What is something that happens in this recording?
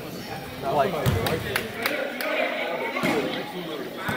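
A basketball bounces on a hard floor, echoing in a large hall.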